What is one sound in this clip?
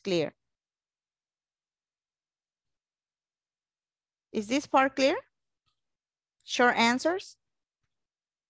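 A woman speaks in short phrases through an online call.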